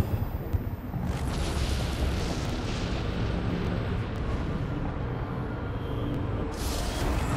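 Large wings flap with heavy whooshes.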